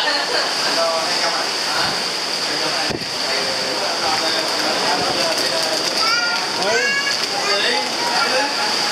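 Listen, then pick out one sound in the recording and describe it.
Waves wash onto a beach nearby.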